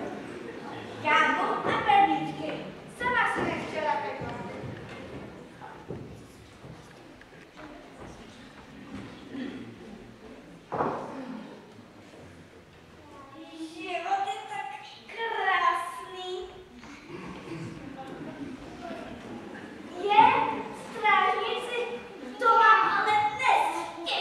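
Children speak lines on a stage, heard from a distance in a hall.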